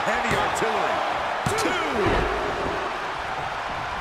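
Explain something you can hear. A body thuds onto a wrestling mat.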